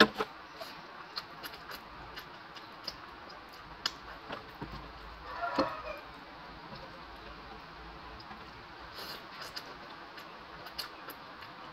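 A woman slurps noodles.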